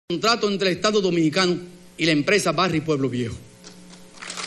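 A middle-aged man speaks calmly and formally into a microphone in a large hall.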